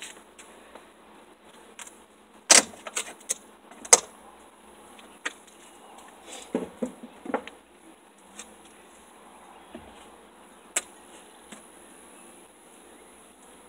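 A metal hive tool pries and scrapes at wooden frames, with sharp knocks and creaks.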